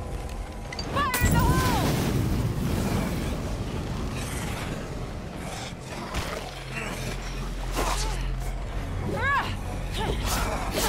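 Zombies groan and snarl nearby.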